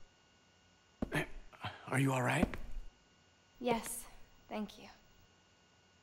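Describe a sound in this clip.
A young woman speaks softly and calmly.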